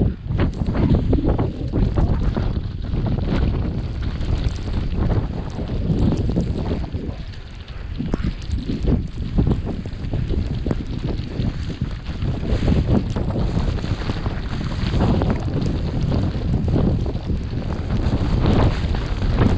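Strong wind gusts and roars across a microphone outdoors.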